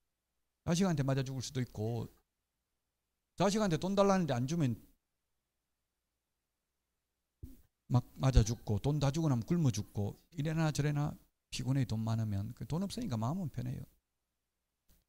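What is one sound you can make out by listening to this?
A middle-aged man lectures with animation through a microphone.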